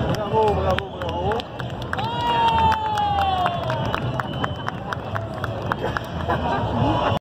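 A large outdoor crowd chatters and cheers.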